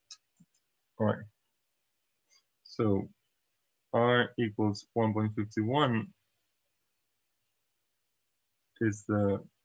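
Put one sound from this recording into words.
A young man speaks calmly and close to a microphone, in short bursts.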